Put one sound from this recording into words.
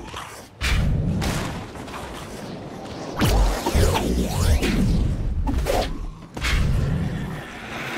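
Wind rushes past as a game character glides through the air.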